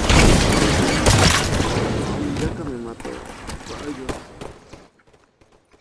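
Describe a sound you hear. Gunfire and a loud blast roar at close range, then die away.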